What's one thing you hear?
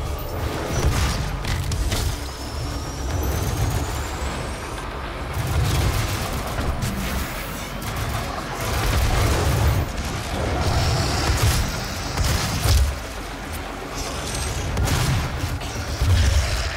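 A monster growls and snarls.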